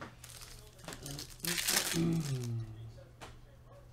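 A foil wrapper tears open.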